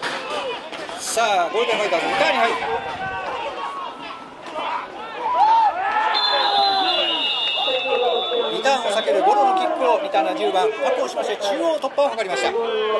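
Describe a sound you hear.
Spectators cheer and shout loudly.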